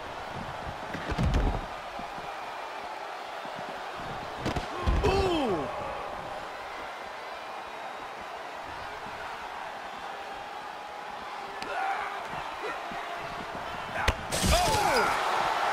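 Heavy thuds of bodies hitting the floor ring out.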